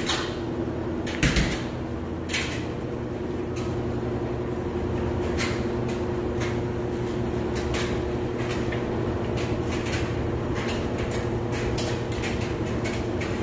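A steady low machine hum comes from a top-loading washing machine.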